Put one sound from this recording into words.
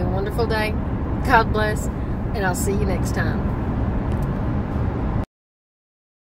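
A car engine rumbles low and steady from inside the cabin.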